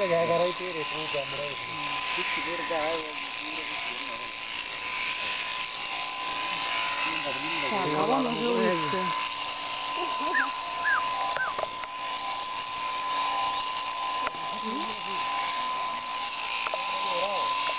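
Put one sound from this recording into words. Sheep bleat repeatedly nearby.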